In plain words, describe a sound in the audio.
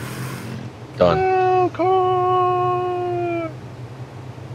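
A large creature lets out a long, wavering cry.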